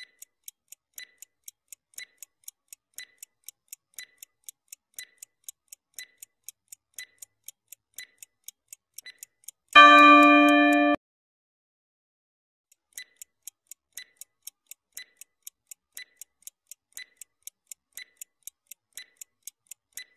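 A stopwatch ticks quickly and steadily.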